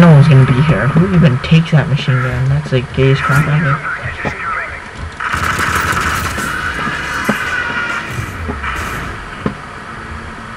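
Rifle gunfire rings out in short bursts.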